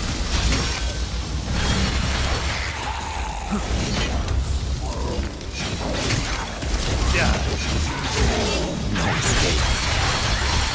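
Swords clash and slash in rapid combat.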